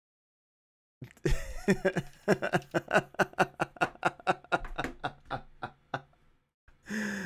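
A man laughs heartily, close to a headset microphone.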